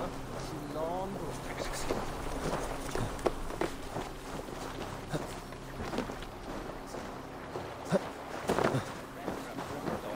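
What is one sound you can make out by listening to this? Footsteps thud and scrape on wooden planks.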